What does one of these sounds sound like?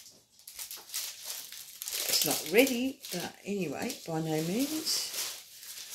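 A fabric pouch rustles as it is handled.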